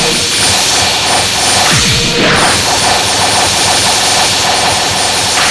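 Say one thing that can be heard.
Rapid electronic hit sounds crackle over and over.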